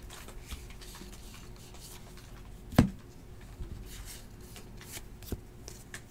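A stack of trading cards is shuffled through by hand.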